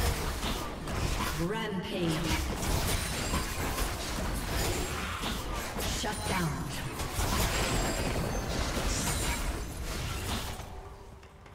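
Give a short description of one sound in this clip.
Magic blasts crackle and crash in a fast fight.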